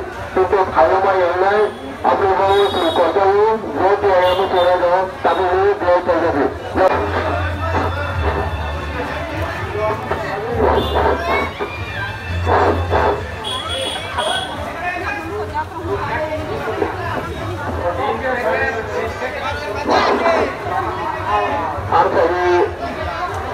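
A crowd of men and women chatters loudly close by, outdoors at night.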